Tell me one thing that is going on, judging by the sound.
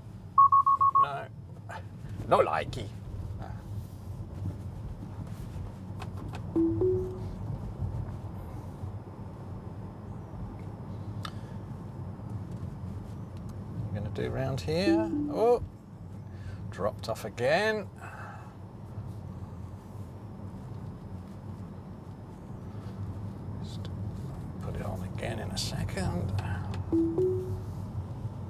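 An electric car's dashboard chime beeps.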